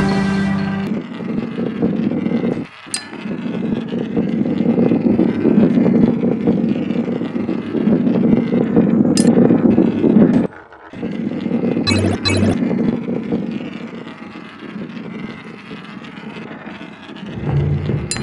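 Coins chime as they are collected.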